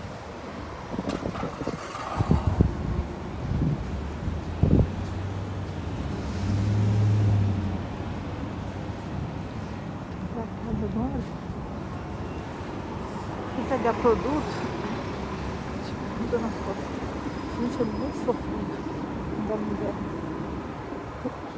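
Footsteps scuff on a pavement outdoors.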